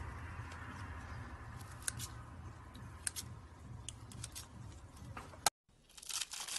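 Scissors snip through a soft, crunchy block.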